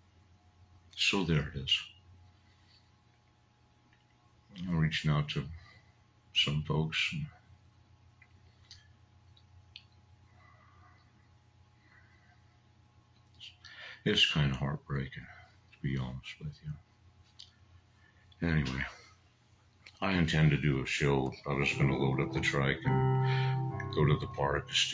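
A middle-aged man speaks slowly into a close microphone, in short bursts with long pauses.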